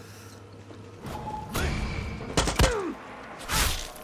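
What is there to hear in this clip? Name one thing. A silenced rifle fires a muffled shot.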